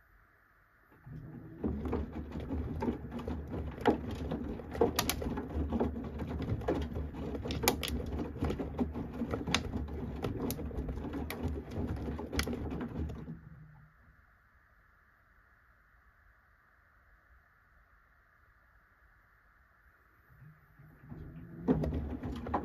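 A washing machine drum turns and churns laundry with a low rumble.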